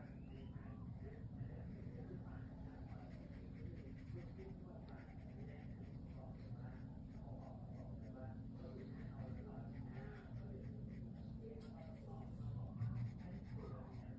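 A soft brush swishes wetly across paper.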